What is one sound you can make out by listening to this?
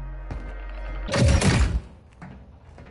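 A heavy thump lands as a figure drops down a hatch.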